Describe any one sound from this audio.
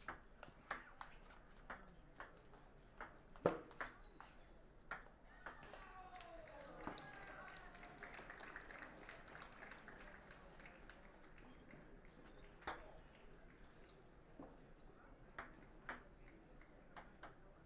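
A table tennis ball clicks back and forth quickly in a rally.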